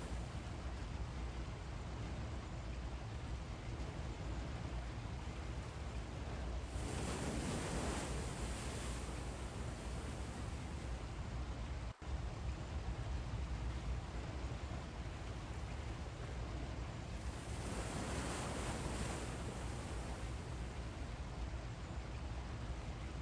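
Water rushes along a ship's hull.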